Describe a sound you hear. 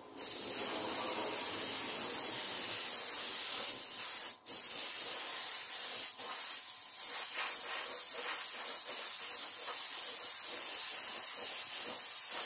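A spray gun hisses steadily as it sprays paint, with brief pauses.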